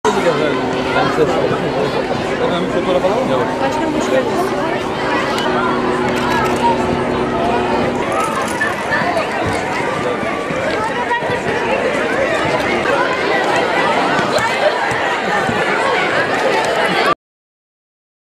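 A crowd of men and children chatter and call out all around, outdoors.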